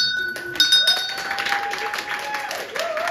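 Young women cheer and whoop.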